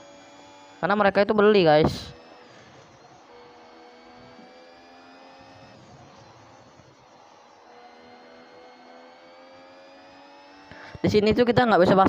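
A racing car engine whines steadily, its pitch rising and dropping with gear changes.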